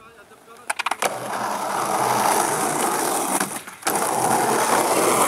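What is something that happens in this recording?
Skateboard wheels roll and rumble loudly over rough concrete.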